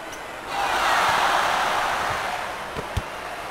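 A crowd cheers loudly and then fades away.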